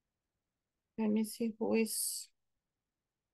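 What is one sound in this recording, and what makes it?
A woman speaks a few short words over an online call.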